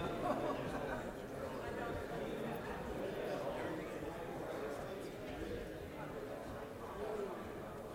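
Many men and women talk at once in a large echoing hall.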